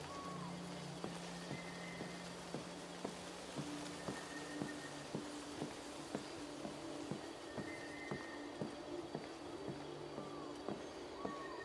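Footsteps tap steadily on a hard path.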